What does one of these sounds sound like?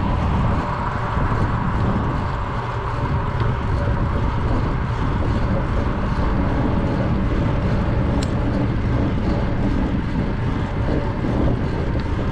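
A car's engine hums steadily as it drives along a road.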